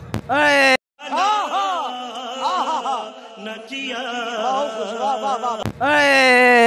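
A man shouts with animation through a microphone.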